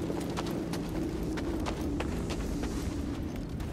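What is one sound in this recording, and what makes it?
Footsteps crunch on loose stones and gravel.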